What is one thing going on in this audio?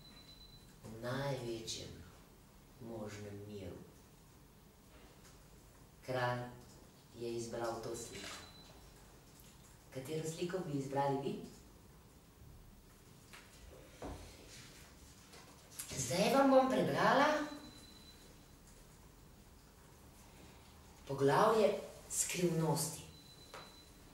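A woman speaks expressively into a microphone, in short phrases with pauses.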